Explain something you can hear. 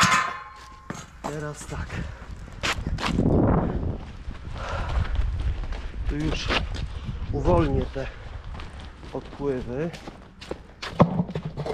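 Shoes scuff and tap on pavement.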